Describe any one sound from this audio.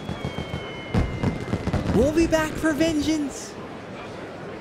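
Fireworks burst and crackle.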